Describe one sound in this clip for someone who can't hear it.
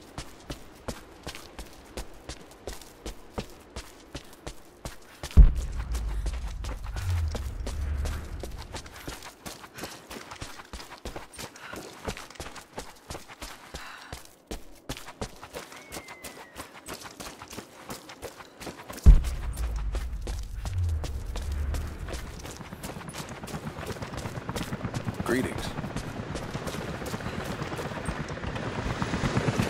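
Footsteps crunch on stone and dirt at a steady walking pace.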